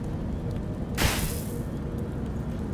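A magical shimmering whoosh bursts out and quickly fades.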